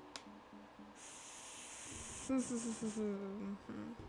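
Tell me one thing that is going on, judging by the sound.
Rain patters softly.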